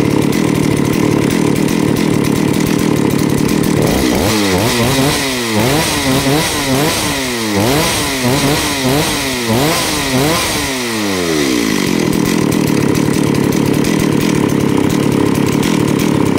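A chainsaw engine idles with a steady rattling drone.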